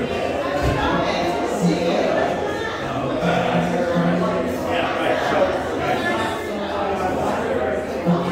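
A woman speaks into a microphone over loudspeakers.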